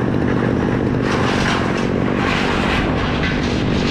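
A chainsaw bites into wood with a harsh, rising whine.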